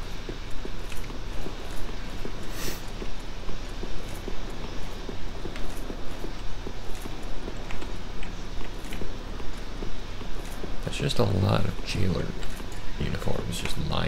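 Armoured footsteps run quickly on stone, with a steady rhythm.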